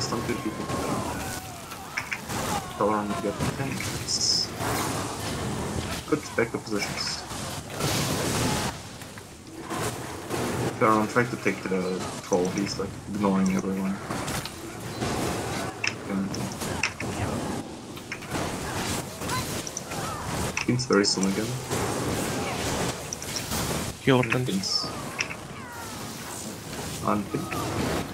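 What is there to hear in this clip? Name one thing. Electric spells crackle and zap throughout a fierce battle.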